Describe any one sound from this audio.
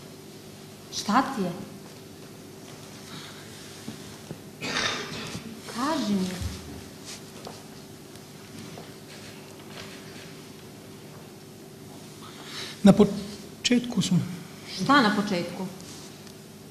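A young woman speaks with feeling from a distance in a large hall.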